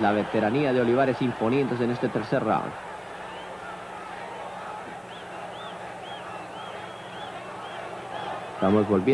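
A crowd murmurs steadily in a large hall.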